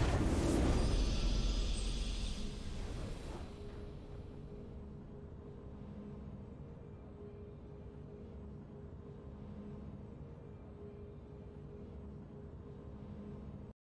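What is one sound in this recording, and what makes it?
A triumphant fanfare plays and settles into a soft, steady melody.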